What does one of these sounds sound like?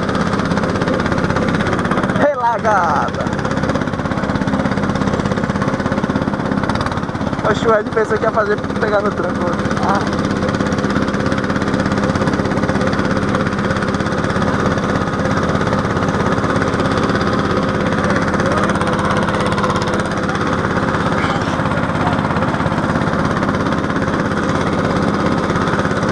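A kart engine idles with a steady low rumble close by.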